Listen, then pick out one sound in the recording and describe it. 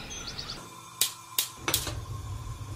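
A gas burner clicks as it lights.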